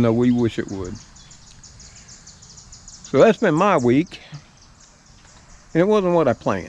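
An elderly man speaks calmly, close to the microphone, in short phrases with pauses.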